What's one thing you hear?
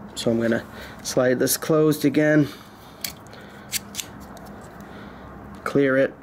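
A metal caliper slides and clicks.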